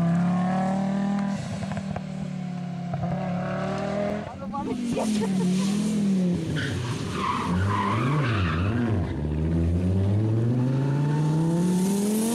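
An Audi Quattro rally car's five-cylinder turbo engine revs hard as the car accelerates through the gears.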